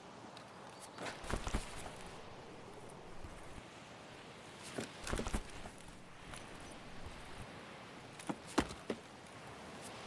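Gear rustles and clicks as items are handled.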